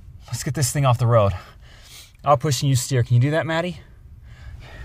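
A man speaks calmly from inside a car.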